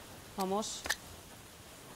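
A young woman speaks with animation through a headset microphone.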